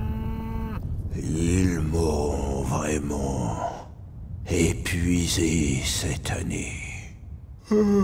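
A man speaks in a deep, grumbling voice.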